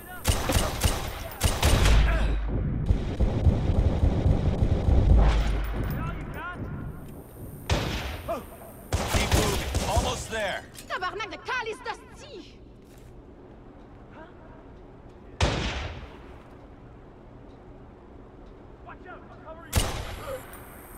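Gunshots bang out in quick bursts.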